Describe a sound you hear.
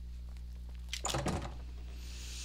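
A heavy wooden door bangs open.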